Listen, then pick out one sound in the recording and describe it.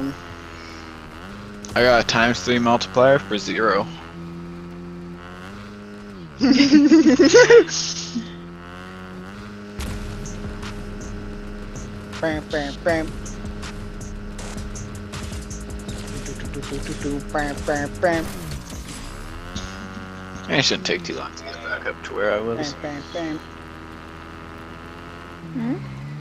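A dirt bike engine hums and revs up and down.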